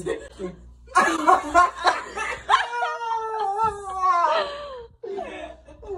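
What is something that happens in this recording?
Young women laugh loudly close by.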